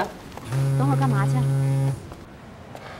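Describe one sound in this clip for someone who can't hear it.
A phone rings with a steady electronic melody.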